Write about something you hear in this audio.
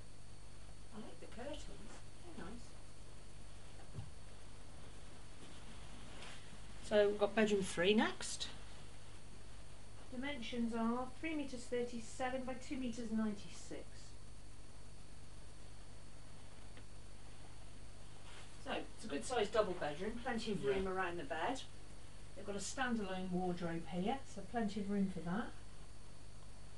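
A woman speaks calmly nearby, in short bursts.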